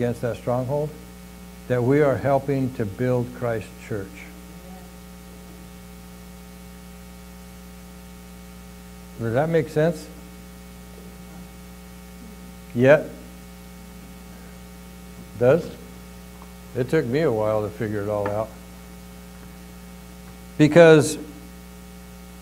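A middle-aged man speaks calmly into a microphone, with long pauses.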